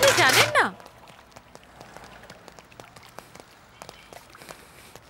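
Footsteps of a group walking tap on pavement.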